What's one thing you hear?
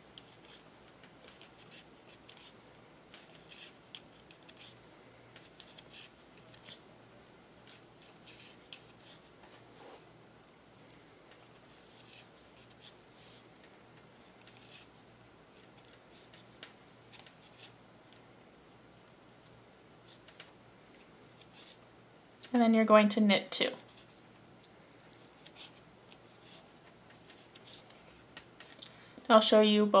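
Knitting needles click and tap softly.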